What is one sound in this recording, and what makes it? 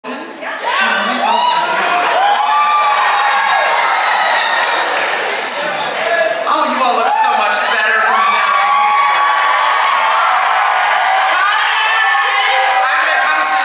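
A woman sings loudly through a microphone.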